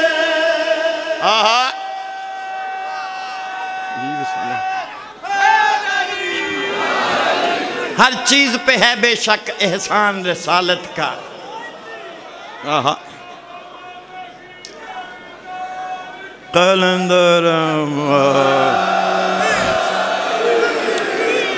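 A man recites with feeling through a loudspeaker, echoing outdoors.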